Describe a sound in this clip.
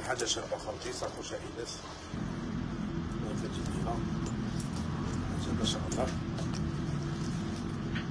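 A bag strap rustles and clicks as it is handled.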